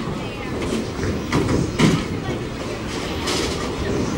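Bowling pins crash and clatter in a loud, echoing hall.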